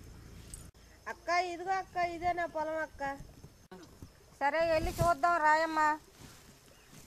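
A woman speaks calmly nearby, outdoors.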